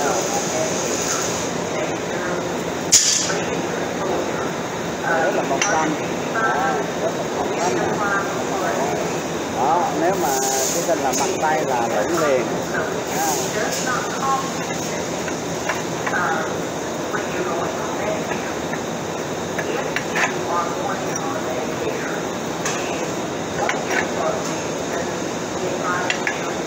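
Metal tubes clank against a metal table.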